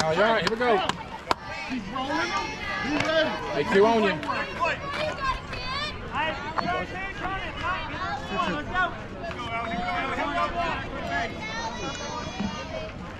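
Young women shout and cheer outdoors nearby.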